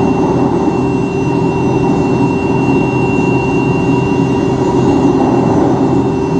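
An electric welding arc crackles and buzzes steadily.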